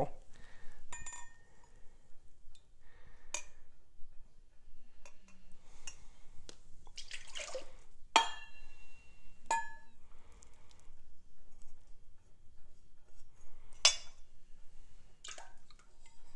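A metal cup clinks against a hard surface.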